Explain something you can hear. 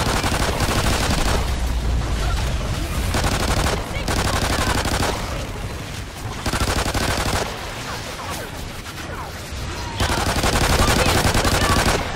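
Fiery explosions roar.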